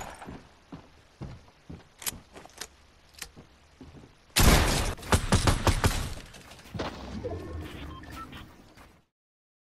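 Sharp game sound effects of shooting and building crack and thud in quick bursts.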